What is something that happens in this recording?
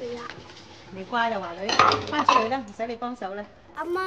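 A young girl answers.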